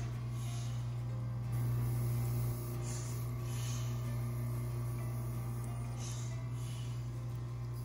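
Air hisses in soft bursts as a rubber bulb is squeezed.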